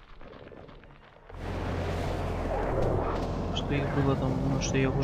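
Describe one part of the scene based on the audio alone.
Magic spells whoosh and sparkle.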